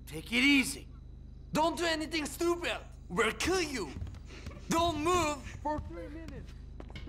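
A man shouts threats angrily, close by.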